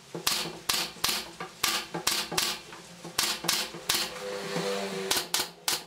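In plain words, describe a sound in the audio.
A hammer knocks sharply on wood in quick blows.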